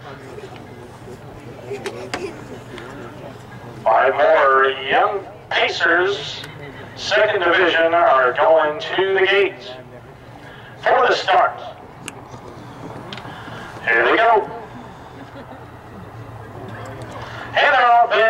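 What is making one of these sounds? Horses' hooves thud on a dirt track as harness horses trot past.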